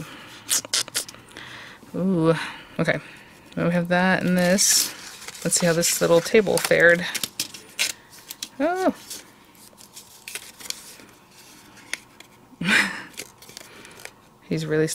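Stiff paper pieces rustle and tap as hands handle them.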